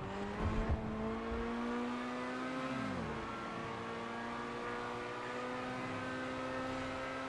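A car engine roars steadily at high revs, dropping in pitch briefly as it shifts gear.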